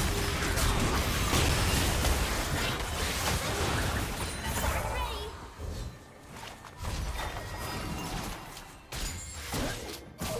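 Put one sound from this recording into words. Spell effects whoosh and crackle in a video game fight.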